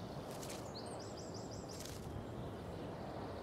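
A small bird chirps.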